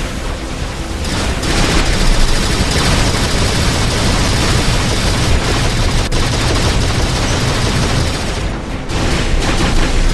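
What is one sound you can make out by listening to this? Heavy guns fire in loud, rapid bursts.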